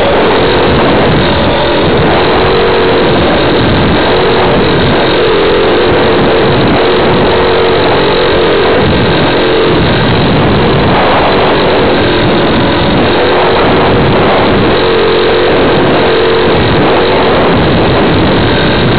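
A small aircraft's motor whines steadily and loudly.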